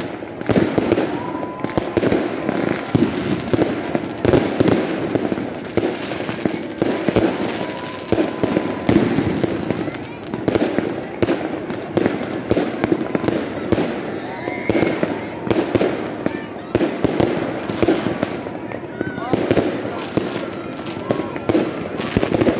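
Rockets whistle as they shoot upward.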